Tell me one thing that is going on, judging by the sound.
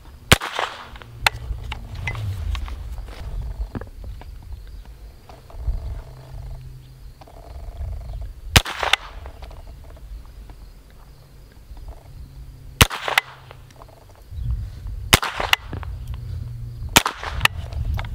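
A rifle fires sharp single shots outdoors.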